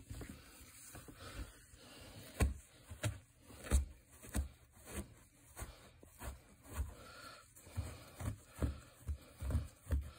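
A microfibre cloth rubs and scrubs against carpet in rhythmic strokes.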